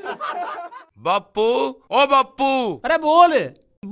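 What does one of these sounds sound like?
Two men talk with animation close by.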